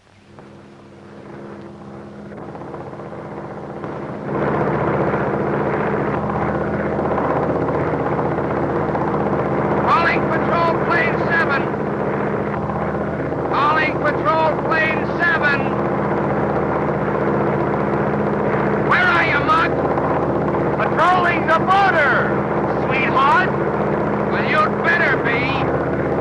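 A biplane's piston engine drones in flight.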